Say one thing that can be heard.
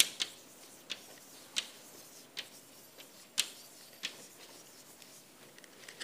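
Chalk taps and scrapes sharply on a blackboard.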